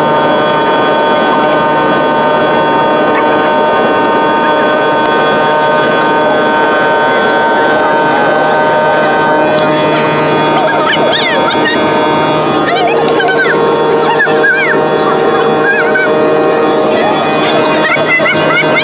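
Jet engines drone steadily and loudly.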